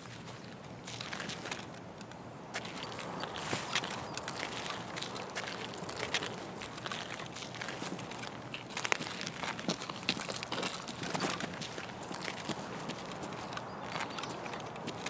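Footsteps crunch on gravel and grass at a steady walking pace.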